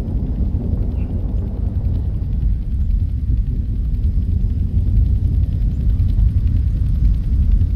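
A helicopter's rotor thumps steadily and loudly close by.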